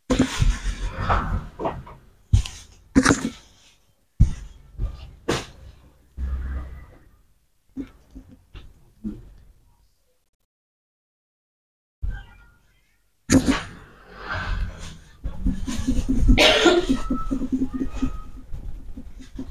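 Hands rub, press and pat against skin and hair close by.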